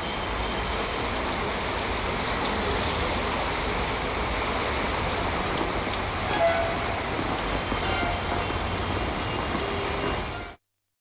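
Traffic rumbles slowly along a wet road.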